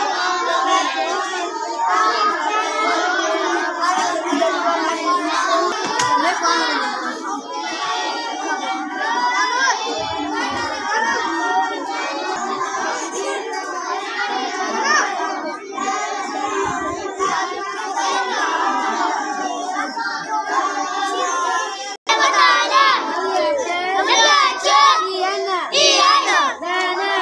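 Many children chatter and recite aloud outdoors.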